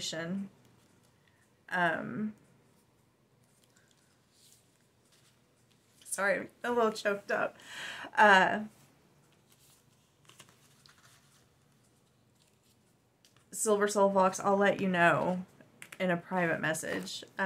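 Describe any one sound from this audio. A woman speaks calmly and close to the microphone, with pauses.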